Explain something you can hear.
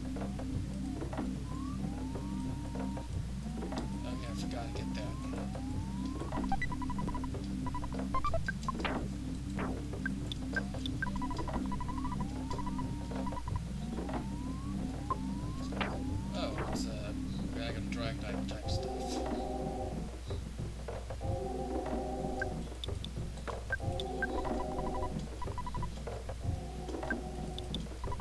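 Chiptune video game music plays in a steady looping tune.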